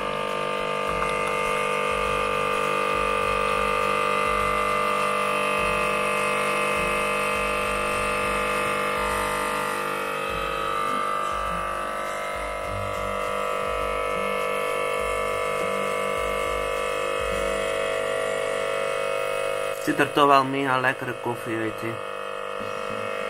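Coffee trickles into a cup.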